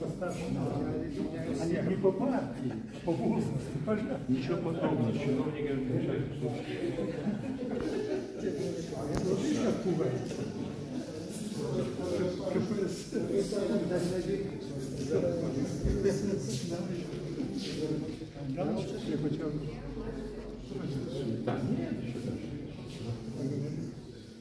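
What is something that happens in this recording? Several people chat in a large echoing hall.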